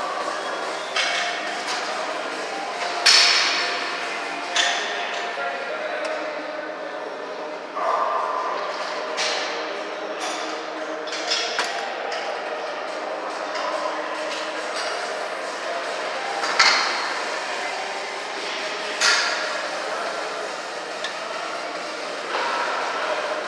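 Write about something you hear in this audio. Iron weight plates on a shoulder press machine clank as the arms move.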